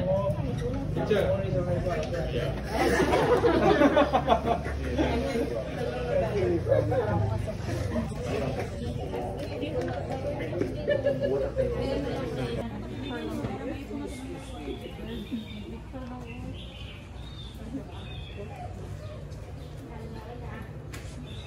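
Several women and men chat nearby in a crowded murmur.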